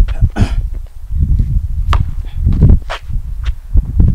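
A basketball bounces on concrete.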